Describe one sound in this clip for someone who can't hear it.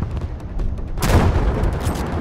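A large explosion booms and roars close by.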